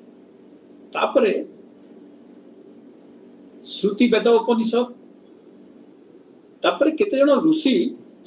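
An elderly man speaks calmly in short bursts over an online call.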